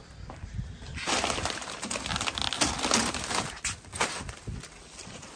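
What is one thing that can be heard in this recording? Plastic shopping bags rustle and crinkle close by.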